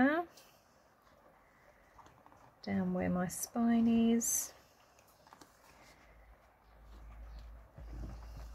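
Paper rustles softly as it is handled and folded.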